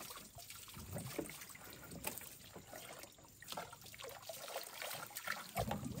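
Water splashes from a hose onto a puppy.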